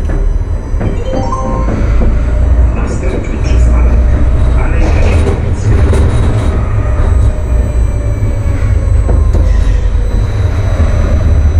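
Tram wheels squeal on the rails.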